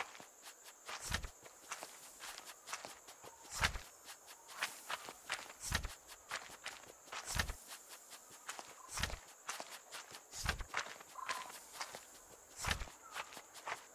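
A soft paper page flips with a low thud every couple of seconds.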